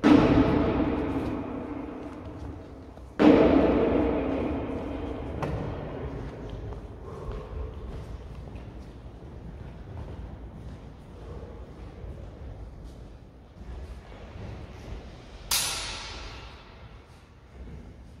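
Metal blades clang sharply and ring out in a large echoing hall.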